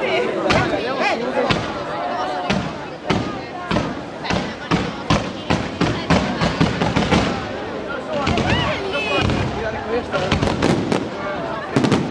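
Fireworks bang and crackle rapidly overhead.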